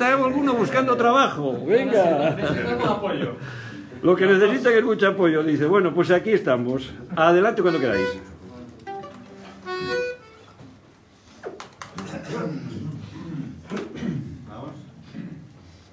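A group of men sings together in a room.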